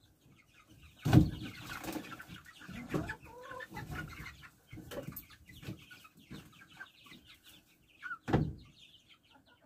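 Feed rattles and clatters in a metal bin as it is scooped.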